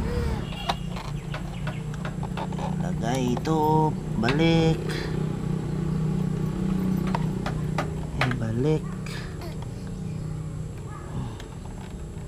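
A metal tool clicks and scrapes against a bolt.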